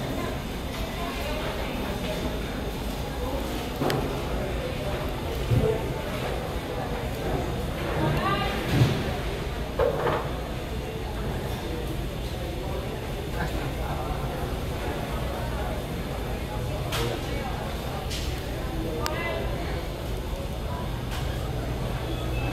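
A jet engine roars steadily in the distance, muffled through glass.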